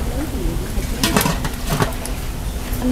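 A metal pot lid clatters onto a steamer.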